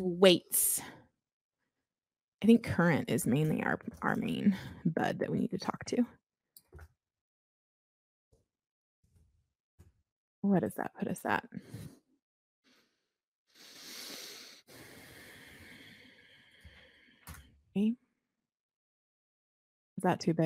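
A woman talks calmly into a close microphone, in bursts with pauses.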